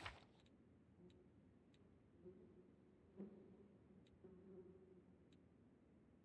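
A young man talks quietly and calmly into a microphone.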